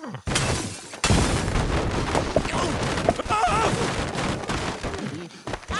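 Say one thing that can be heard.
Wooden blocks crash and clatter as a tower collapses.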